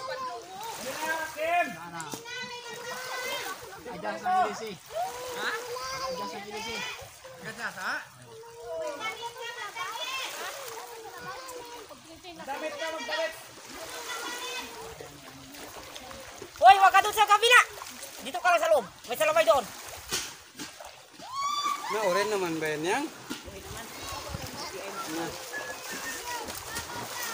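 Small waves lap gently on the shore.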